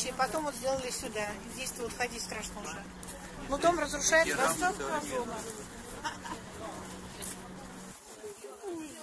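A boy talks close by.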